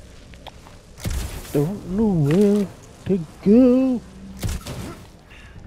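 A heavy thud sounds as someone lands from a jump.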